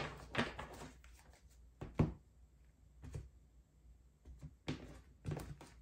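Cards are shuffled and slapped down onto a table.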